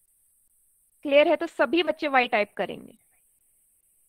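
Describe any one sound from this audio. A young woman speaks calmly into a close microphone, heard as if over an online call.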